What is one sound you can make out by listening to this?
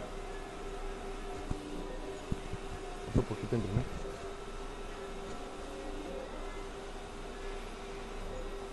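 A large printer hums steadily as its print head moves back and forth.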